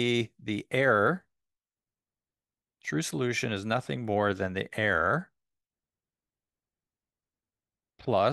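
A man lectures calmly through a microphone in short bursts.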